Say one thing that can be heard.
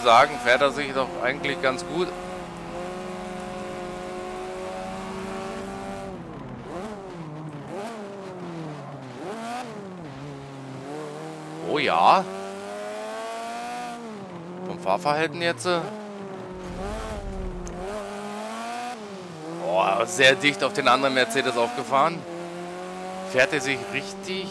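A racing car engine roars loudly, revving up and dropping as it shifts gears.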